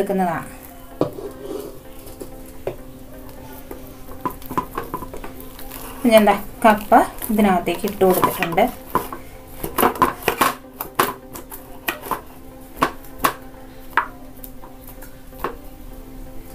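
A spoon scrapes and taps against a metal bowl.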